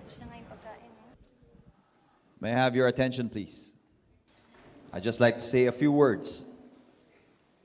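A man speaks loudly and with feeling into a microphone in a large echoing hall.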